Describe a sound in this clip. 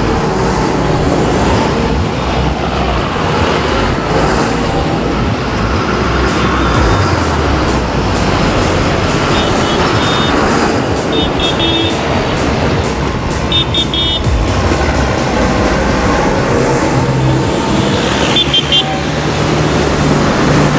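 Heavy tractor engines rumble loudly as a line of tractors drives past close by.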